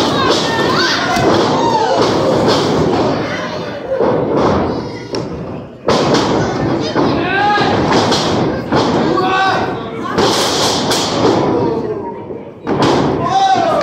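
A wrestler thuds onto a ring mat.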